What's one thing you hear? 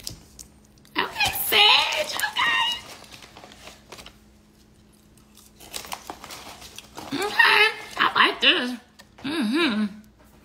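A young woman speaks expressively and close to a microphone.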